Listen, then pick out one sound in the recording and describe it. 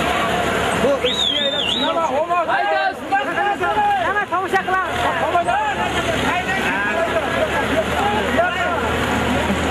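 Men in a crowd whistle shrilly.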